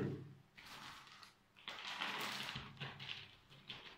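Loose soil crumbles and patters onto a wooden surface.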